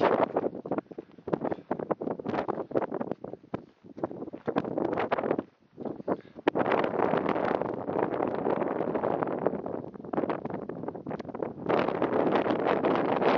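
Wind gusts roar against the microphone outdoors.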